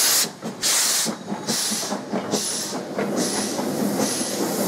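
Train wheels clatter over rail joints as carriages roll past.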